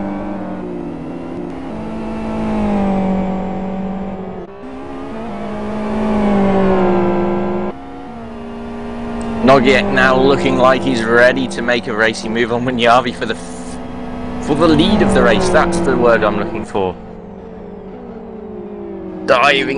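Racing car engines roar at high revs, rising and falling in pitch.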